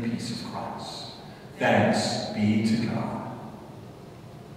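A middle-aged man speaks through a microphone in an echoing hall.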